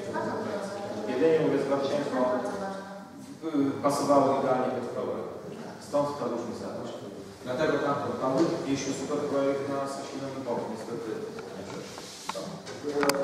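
A man speaks calmly to a room, heard at a distance with some echo.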